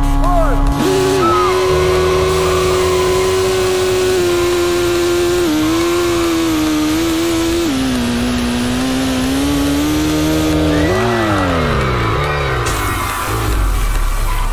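A car engine roars at high revs, then winds down as the car slows.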